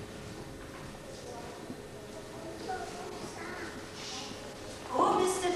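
A man speaks quietly, heard from a distance.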